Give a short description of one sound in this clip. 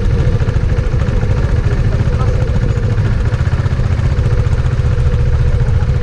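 A motorcycle engine idles loudly nearby.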